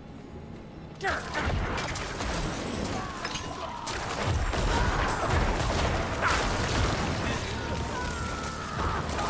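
Game combat sounds of clashing and bursting magic play loudly.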